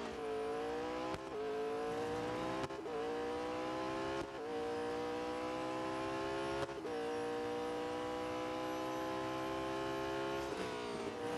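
A racing car engine roars at high speed, rising in pitch and dropping briefly with each gear shift.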